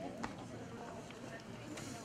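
A crowd of men and women murmurs and chatters nearby.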